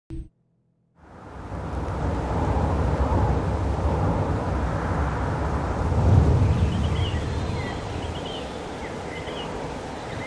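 A car engine roars as the car speeds along a road.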